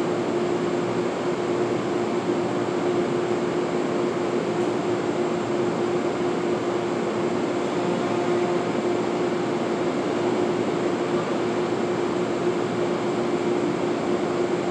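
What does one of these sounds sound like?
A subway train hums steadily in the distance in an echoing underground station.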